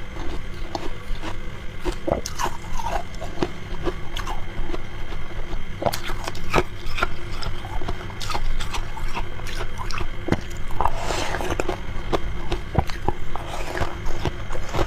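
A spoon scrapes and clinks against shaved ice in a glass.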